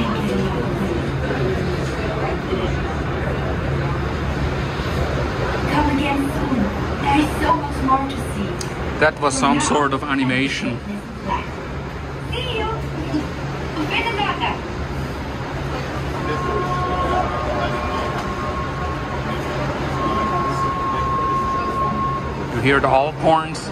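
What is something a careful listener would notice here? A metro train hums.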